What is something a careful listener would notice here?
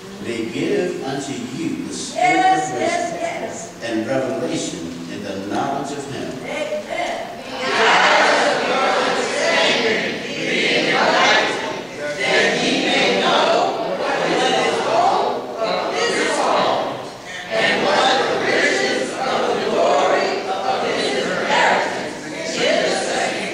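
A man reads aloud steadily through a microphone in an echoing hall.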